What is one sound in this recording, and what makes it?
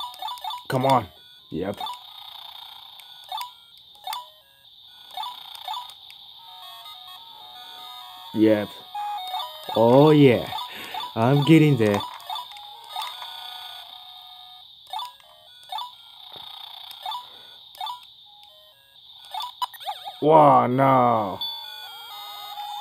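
A small arcade game plays bleeping electronic tunes and sound effects.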